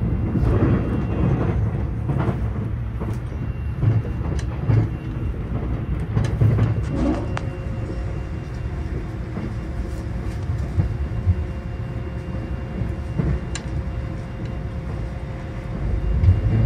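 An electric express train rumbles along at speed, heard from inside the carriage.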